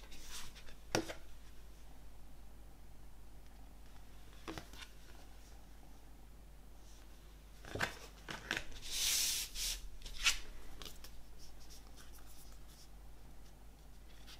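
Stiff paper cards rustle and tap as they are handled.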